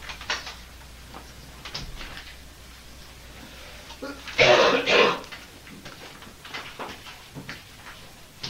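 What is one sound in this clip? Chalk scratches and taps on a blackboard in short strokes.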